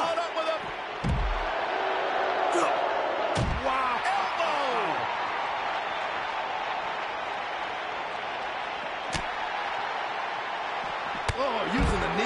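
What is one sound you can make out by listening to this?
Heavy body blows and thuds land in a wrestling fight.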